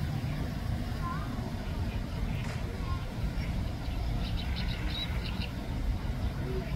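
A duckling peeps softly on the water.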